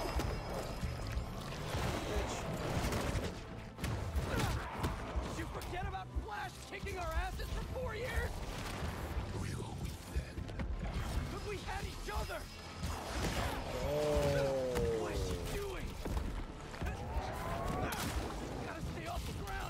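Punches and heavy blows thud and crash in a fight.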